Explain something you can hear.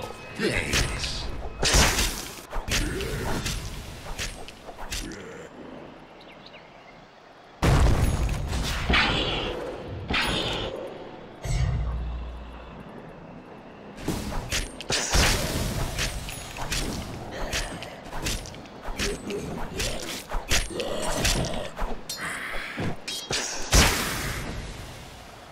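Game spell effects crackle and clash during a fight.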